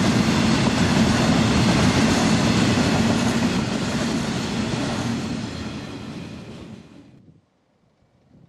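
A heavy freight train rumbles past on the rails and fades away.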